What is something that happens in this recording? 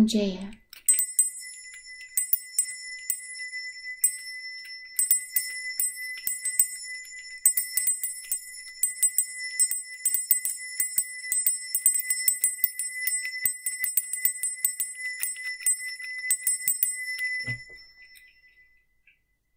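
A small hand bell rings with rapid, bright, tinkling strokes.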